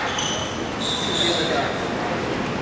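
Athletic shoes squeak on a court floor.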